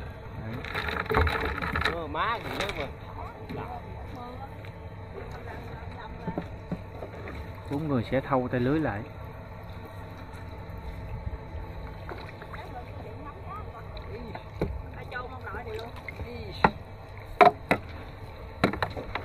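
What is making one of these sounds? Water laps gently against a small boat.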